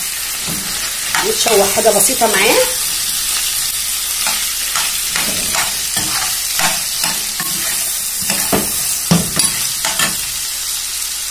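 A spatula scrapes and clatters against a frying pan.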